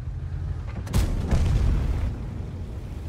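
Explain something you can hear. A tank gun fires with a sharp, echoing boom.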